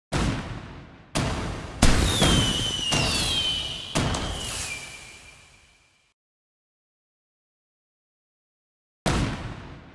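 Fireworks burst with loud booming cracks.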